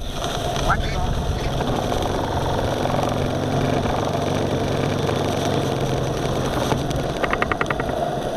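A small boat motor hums steadily.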